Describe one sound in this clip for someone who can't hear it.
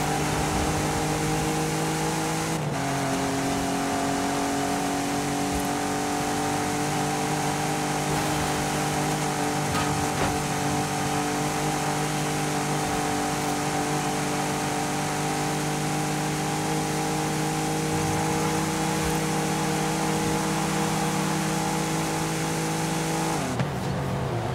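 A car engine drones at high revs, shifting gear and then holding a steady pitch.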